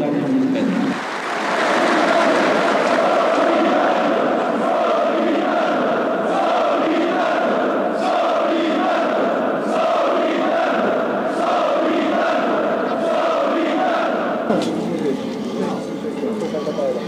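A large crowd sings together outdoors.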